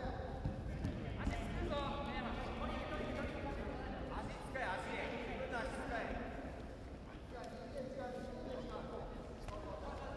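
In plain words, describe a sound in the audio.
A crowd of spectators shouts and calls out in a large echoing hall.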